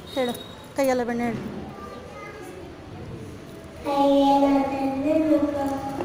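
A young child speaks into a microphone up close.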